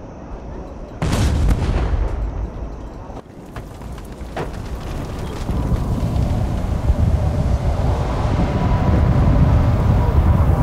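Thunder rumbles low and steadily.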